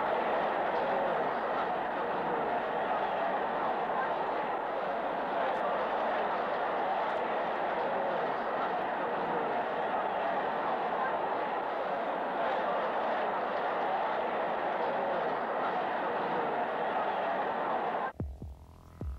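A large stadium crowd cheers loudly and steadily.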